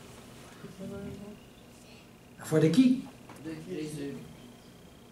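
An elderly man speaks calmly through a headset microphone.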